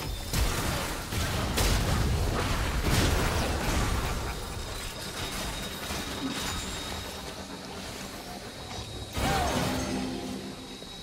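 Game spell blasts and hits crash and crackle in quick bursts.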